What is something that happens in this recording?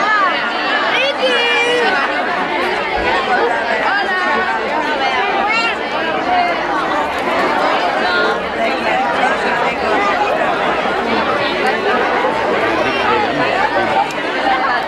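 Children squeal and shout with excitement.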